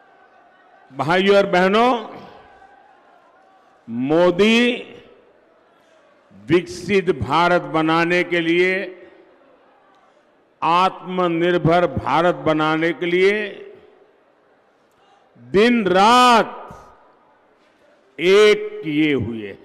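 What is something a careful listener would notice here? An elderly man speaks forcefully into a microphone over a loudspeaker, with pauses between phrases.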